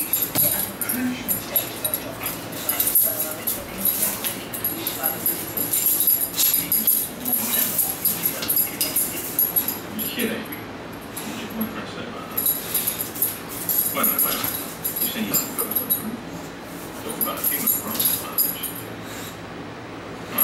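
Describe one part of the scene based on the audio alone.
A dog scampers across a carpeted floor.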